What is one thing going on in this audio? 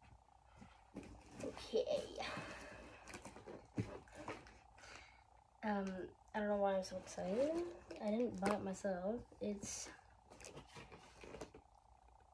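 A cardboard box rustles and scrapes as a boy handles it.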